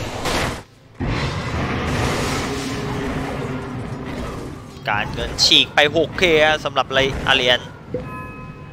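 Magical blasts whoosh and crackle in a video game battle.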